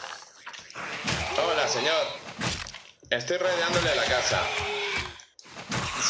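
A zombie groans and snarls nearby.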